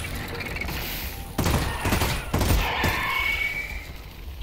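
Electric sparks crackle and zap loudly.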